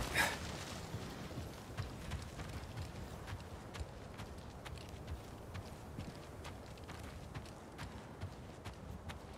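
Footsteps crunch steadily on dirt and gravel.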